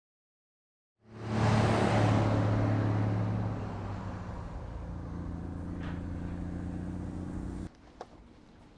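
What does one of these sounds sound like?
An ambulance engine rumbles loudly as it drives past.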